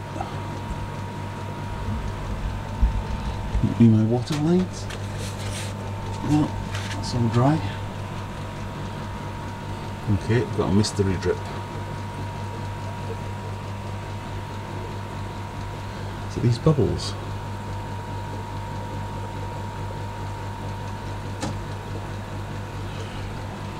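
An aquarium pump hums steadily.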